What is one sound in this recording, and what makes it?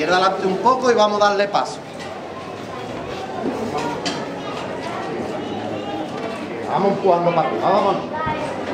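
A crowd murmurs outdoors on a street.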